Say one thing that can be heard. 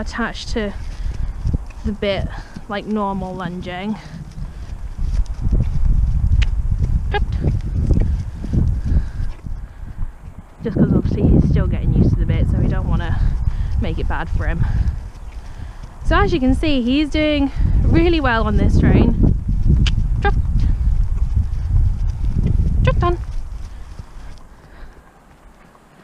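A pony trots with soft hoofbeats on grass.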